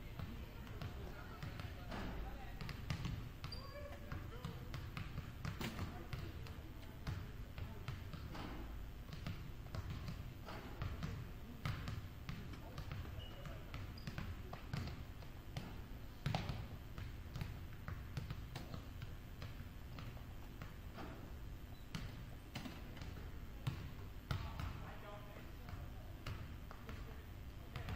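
Basketballs bounce on a wooden floor in a large echoing gym.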